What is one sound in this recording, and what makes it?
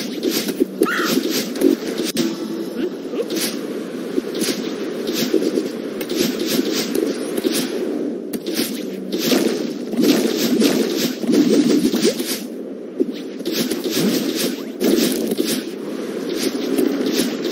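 Upbeat electronic video game music plays steadily.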